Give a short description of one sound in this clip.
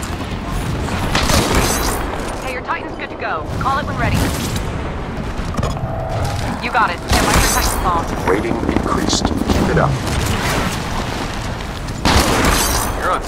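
Sniper rifle shots crack sharply now and then.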